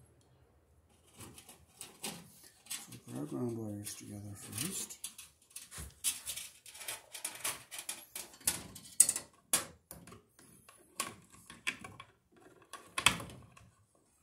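Metal pliers click and snip against wires.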